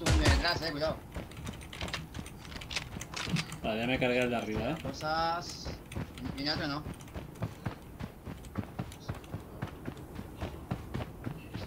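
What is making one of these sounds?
Footsteps patter quickly on the ground.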